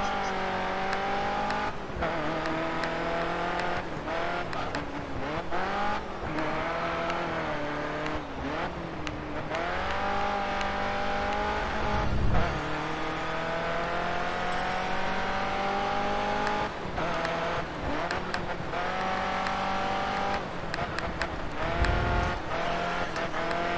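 A racing car engine roars loudly, its pitch rising and falling as the gears shift.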